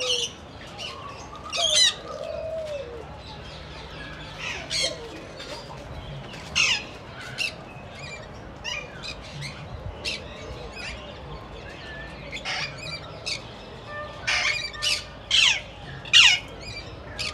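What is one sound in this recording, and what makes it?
Parrots screech and squawk loudly and often, close by.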